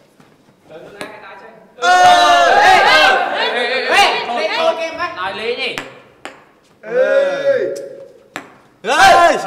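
A ping pong ball bounces on a table with light taps.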